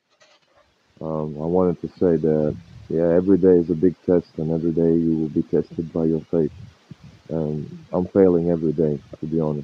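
A man talks close to a phone microphone.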